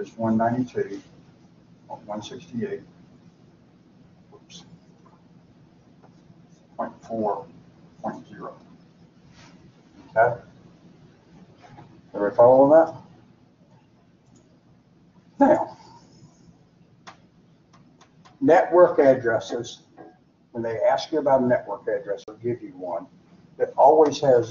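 An elderly man speaks in pauses, explaining calmly.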